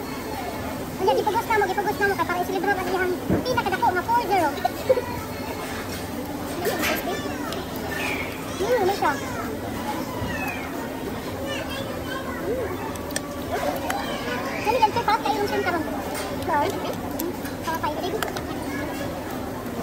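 A middle-aged woman talks nearby.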